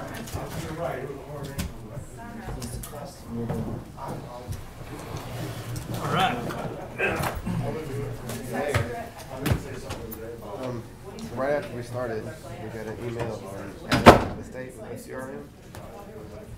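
Several men and women talk among themselves, heard at a distance through a room microphone.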